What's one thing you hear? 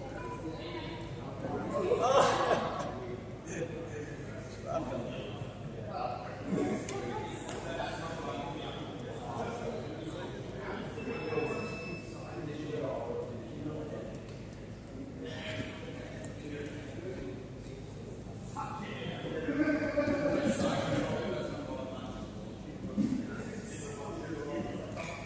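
Young men and women talk and call out in a large echoing hall.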